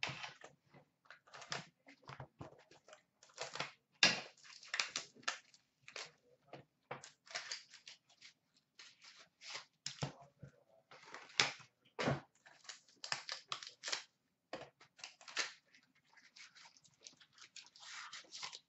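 Plastic wrapping crinkles and crackles in someone's hands.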